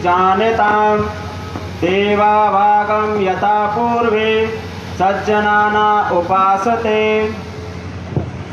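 A man chants slowly into a microphone, heard through loudspeakers outdoors.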